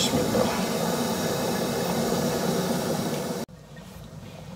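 Food sizzles and bubbles in a pan.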